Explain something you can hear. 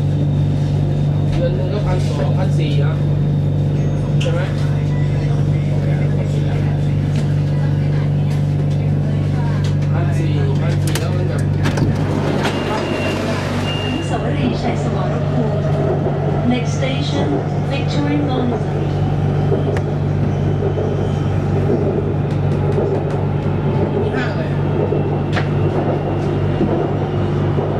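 A train hums steadily as it rolls along an elevated track.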